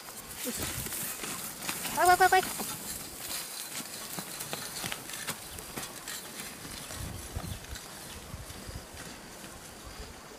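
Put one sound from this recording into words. A plough scrapes and crunches through dry, clumpy soil.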